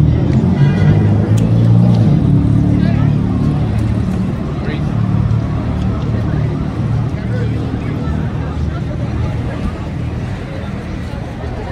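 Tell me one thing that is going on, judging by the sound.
A crowd of adults and children chatters nearby outdoors.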